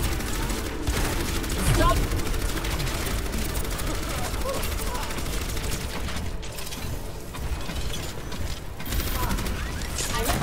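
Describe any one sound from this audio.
A game weapon fires rapid energy shots.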